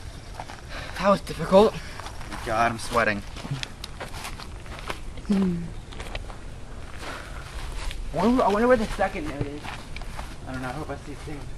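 Young men talk casually close by.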